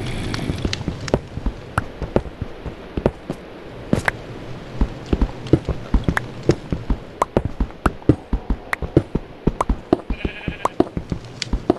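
A pickaxe chips at stone blocks with quick, repeated knocks.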